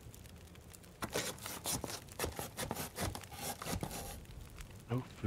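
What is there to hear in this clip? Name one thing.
Wood creaks and cracks as it is broken apart.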